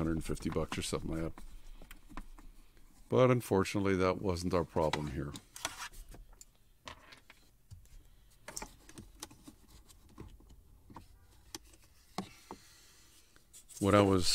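Plastic parts click and rattle.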